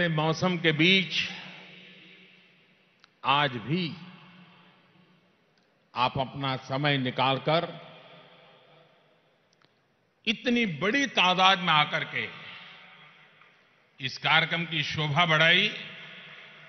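An elderly man speaks forcefully through microphones, his voice echoing in a large hall.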